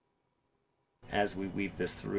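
A middle-aged man talks with animation through a laptop speaker.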